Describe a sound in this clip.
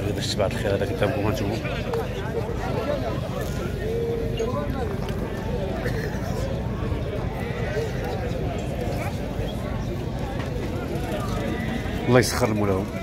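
A crowd of men talks and murmurs nearby, outdoors.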